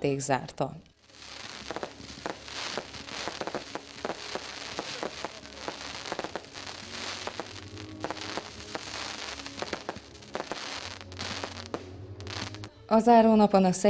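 Fireworks crackle and pop in rapid bursts.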